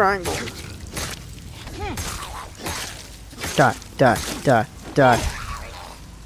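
A knife stabs into flesh with wet thuds.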